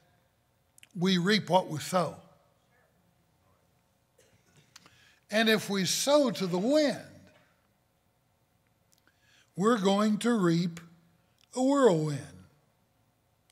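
An elderly man preaches with animation through a microphone, in bursts with pauses.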